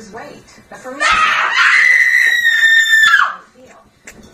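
A woman screams loudly and at length.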